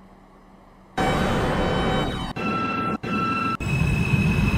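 A subway train's motors hum and whine as the train pulls away.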